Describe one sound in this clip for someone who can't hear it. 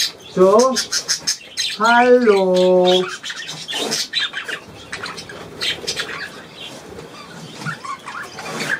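Budgerigars chirp and chatter.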